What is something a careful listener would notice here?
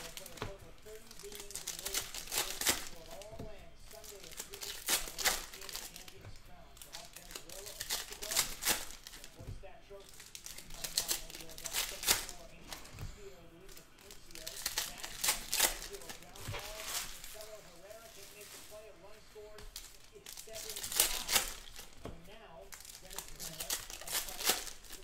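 Plastic wrappers crinkle and tear as packs are opened.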